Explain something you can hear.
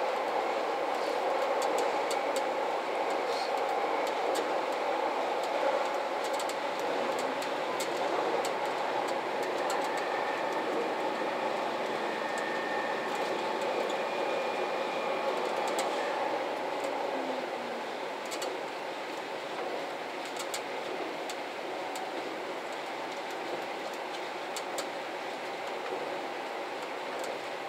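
Train wheels rumble and click over rail joints on a steel bridge.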